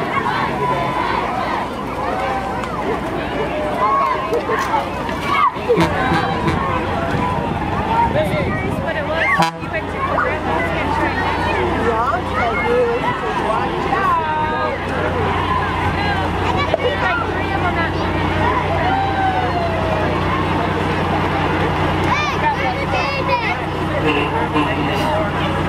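A crowd chatters and cheers along a street outdoors.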